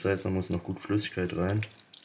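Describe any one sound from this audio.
Milk pours from a carton into a plastic tub.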